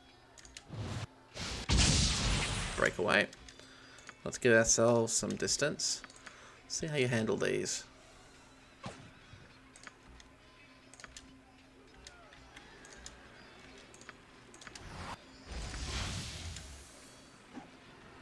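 Magic spells whoosh and crackle in bursts during a game battle.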